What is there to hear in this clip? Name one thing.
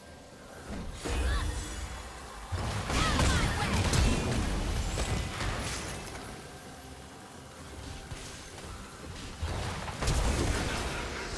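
Magic blasts burst and whoosh during a fight.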